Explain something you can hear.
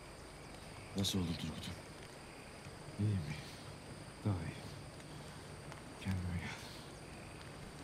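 A man speaks quietly in short, strained phrases close by.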